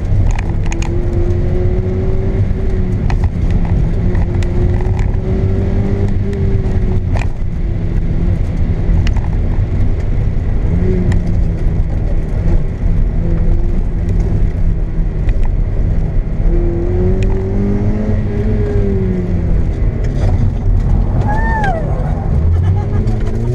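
A car engine roars and revs up and down through gear changes.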